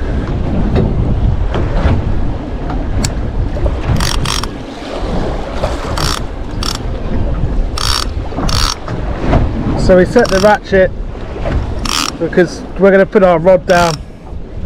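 A multiplier fishing reel clicks as its line is handled.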